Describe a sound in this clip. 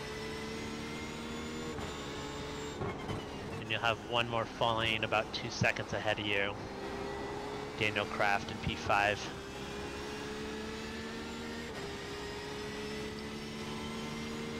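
A race car engine drones steadily, its pitch dropping and rising with gear changes.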